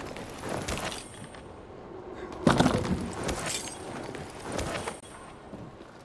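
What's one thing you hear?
Hands grab and rummage through a leather bag.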